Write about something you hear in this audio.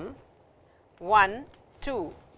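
A woman speaks calmly, as if teaching.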